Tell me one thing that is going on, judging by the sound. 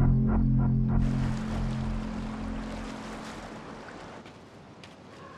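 Small waves lap gently against a shore.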